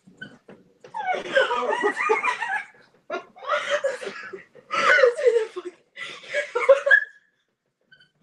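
Young women laugh and shriek over an online call.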